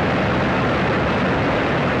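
A fire roars loudly.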